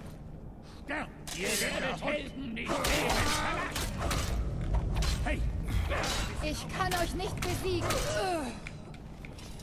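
Metal weapons clash and clang in a fight.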